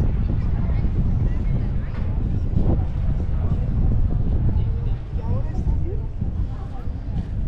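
Men and women chat at a distance.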